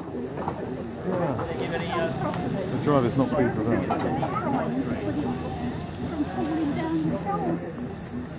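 Several adults chat nearby in the open air.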